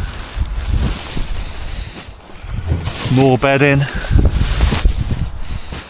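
A full rubbish bag thumps down onto the ground.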